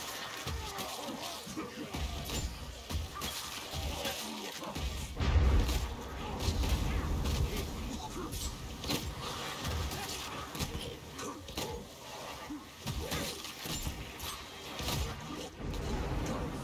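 A horde of monsters snarls and screams.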